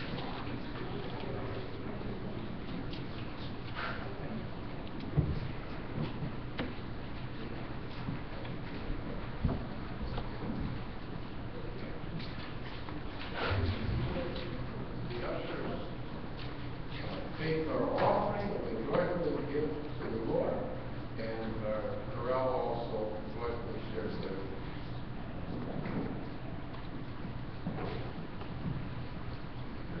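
A congregation murmurs and talks quietly in a large echoing hall.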